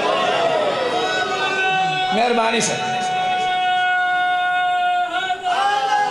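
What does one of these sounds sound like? A crowd of men chants together loudly.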